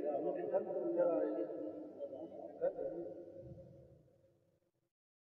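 A man chants in a long, drawn-out voice with echo, slowly fading away.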